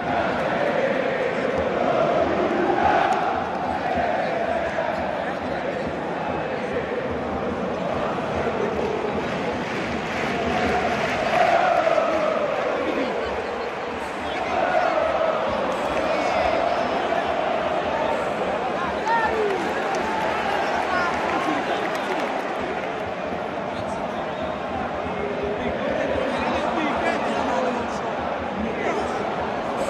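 A large stadium crowd chants and sings loudly, echoing around the stands.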